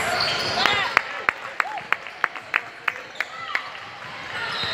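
A basketball bounces repeatedly on a wooden floor.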